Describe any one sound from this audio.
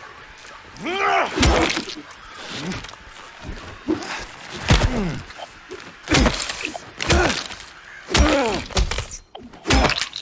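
A creature screeches and gurgles in distress.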